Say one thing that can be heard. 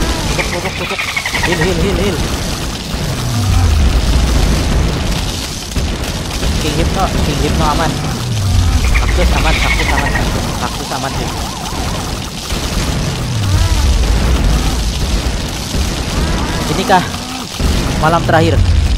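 Game effects pop and chime constantly.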